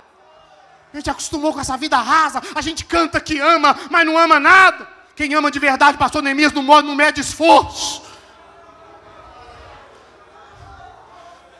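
A man preaches loudly and with fervour through a microphone, echoing in a large hall.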